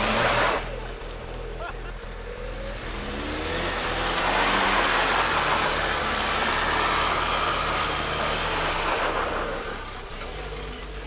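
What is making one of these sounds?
Tyres crunch and slip on dirt and grass.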